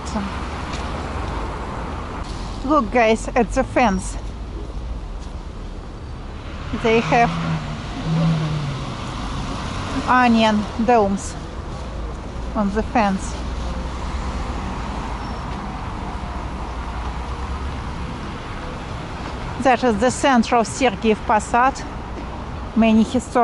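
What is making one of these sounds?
Traffic hums steadily on a nearby street outdoors.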